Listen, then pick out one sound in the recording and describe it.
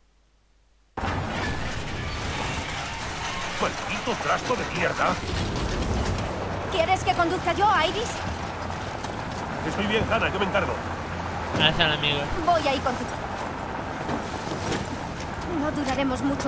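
A car engine rumbles steadily while driving over rough ground.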